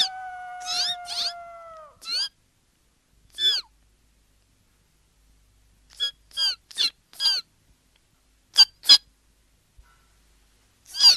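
A small bird chirps in short, high bursts.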